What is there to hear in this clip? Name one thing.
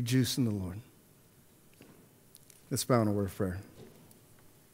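A middle-aged man speaks calmly through a microphone, with long pauses.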